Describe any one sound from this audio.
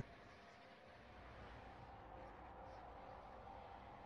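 Spacecraft engines hum softly.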